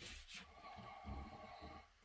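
A plastic bottle is squeezed.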